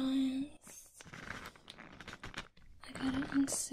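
Cables and packaging rustle and clatter as they are handled up close.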